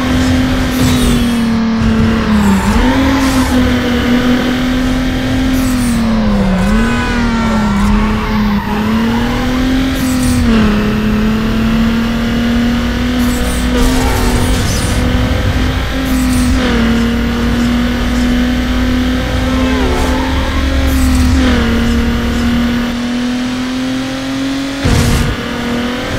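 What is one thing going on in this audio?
A car engine roars steadily, its pitch dipping and rising with gear changes.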